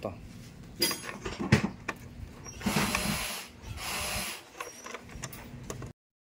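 A screwdriver scrapes as it turns a screw.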